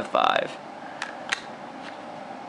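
A plastic game cartridge clacks lightly as it is set down.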